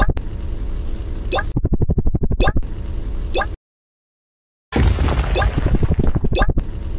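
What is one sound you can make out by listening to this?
A helicopter's rotor thumps rapidly.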